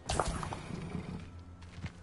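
Footsteps run quickly over soft ground.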